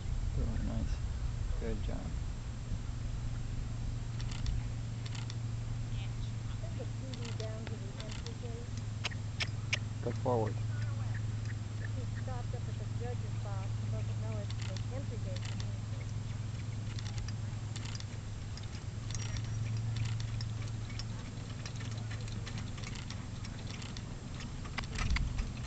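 A horse's hooves thud softly on grass.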